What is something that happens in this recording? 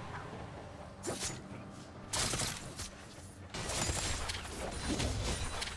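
Magic spells whoosh and burst in quick bursts.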